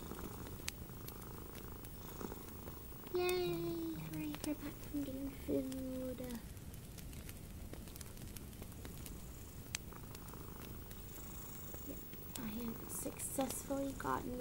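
Long fingernails tap and click against small objects, close by.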